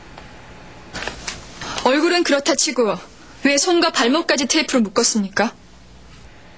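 A young woman speaks with distress.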